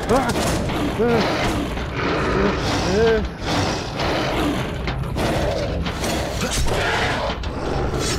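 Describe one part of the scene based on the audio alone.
A monster snarls and growls up close.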